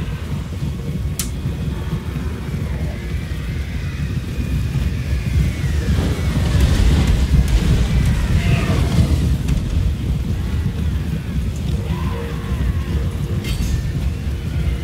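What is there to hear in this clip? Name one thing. Horses' hooves rumble in a deep, steady thunder of a charge.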